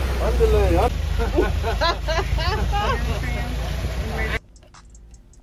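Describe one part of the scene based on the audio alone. A group of young men and women chatter and laugh nearby.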